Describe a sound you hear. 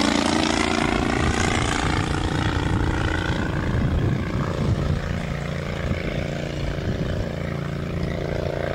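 A small propeller plane's engine drones overhead, gradually fading as it flies away.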